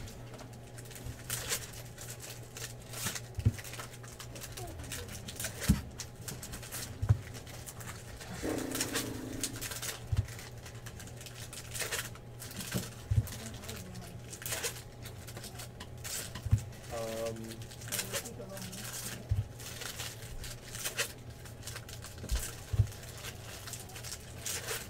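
Plastic wrappers crinkle and rustle as card packs are torn open.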